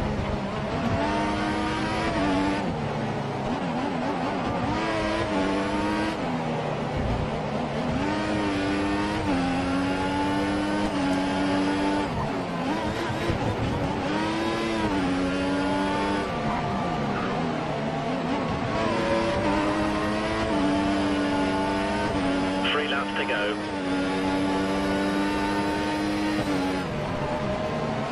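A racing car engine screams, rising and dropping in pitch as gears shift.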